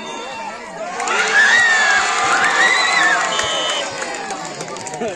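A crowd cheers loudly for a moment.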